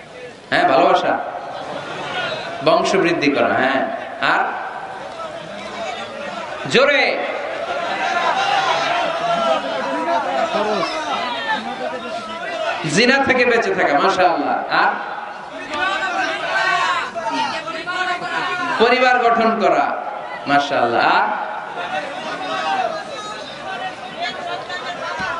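A man speaks with animation into a microphone, heard through loudspeakers outdoors.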